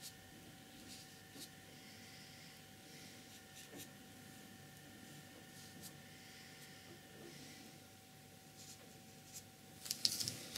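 A brush taps and scratches softly on paper.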